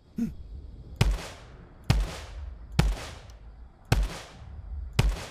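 Gunshots fire one at a time at a slow, even pace, each with a short echo.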